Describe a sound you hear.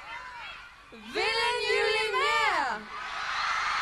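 Two young women sing together through microphones.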